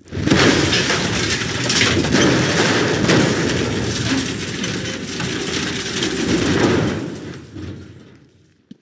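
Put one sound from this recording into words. Debris crashes and rumbles loudly.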